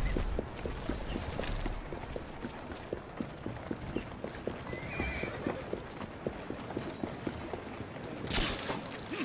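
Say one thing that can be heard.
Quick footsteps run over cobblestones.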